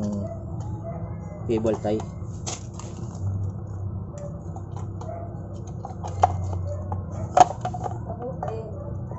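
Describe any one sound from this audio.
Plastic parts click and rattle as hands fit them together.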